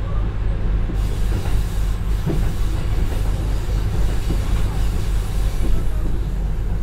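Air rushes loudly as a train passes through a tunnel.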